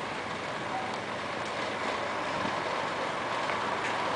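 Cars drive past nearby.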